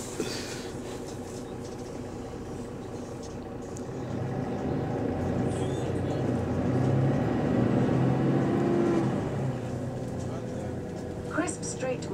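A bus engine rumbles low and swells louder as the bus moves.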